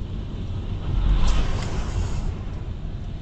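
A truck rumbles past close by on a wet road.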